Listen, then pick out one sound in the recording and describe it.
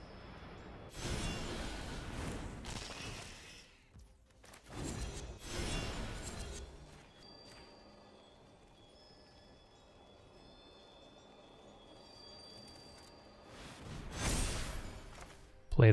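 Magical whooshing effects sweep by in bursts.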